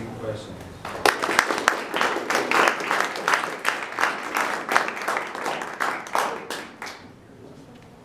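An audience applauds briefly.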